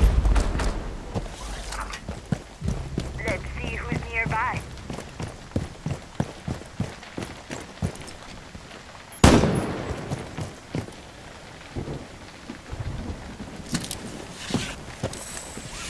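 Footsteps thud and scrape on a tiled roof.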